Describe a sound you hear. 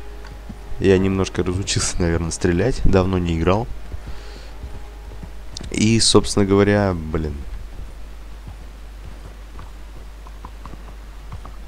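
A horse's hooves clop on a dirt road.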